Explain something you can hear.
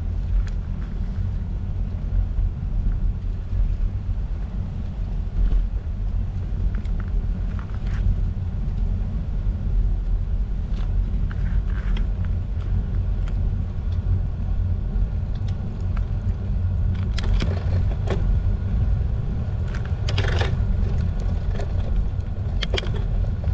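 Wind rumbles loudly against a microphone.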